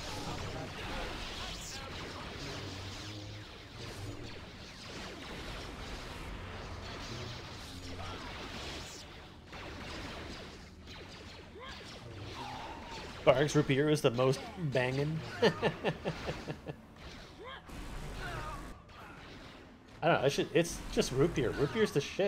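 Lightsabers hum and clash in a game fight.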